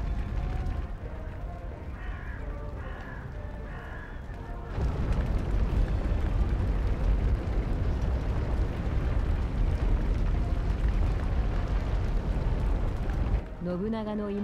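A large fire roars with a low rumble.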